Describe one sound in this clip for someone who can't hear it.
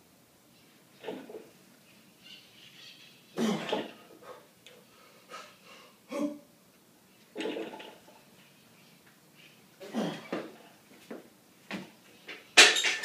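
A man grunts and breathes hard with effort.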